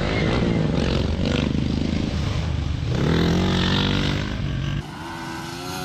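Dirt bike engines roar close by and rev hard.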